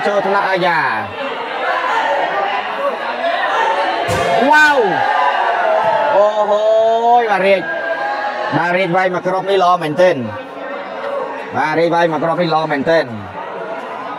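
Young men shout and cheer loudly from nearby.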